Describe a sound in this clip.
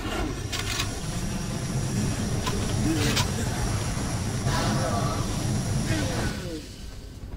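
Flames roar over a burning body.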